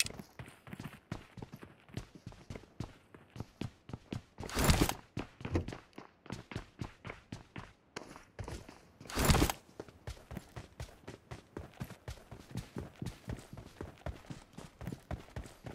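Footsteps thud quickly and steadily on hard ground.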